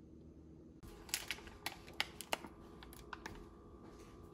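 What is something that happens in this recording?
A plastic packet crinkles in a hand.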